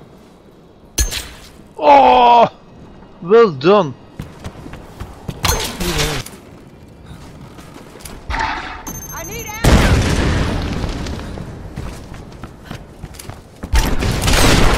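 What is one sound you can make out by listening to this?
Gunshots ring out in short, loud blasts.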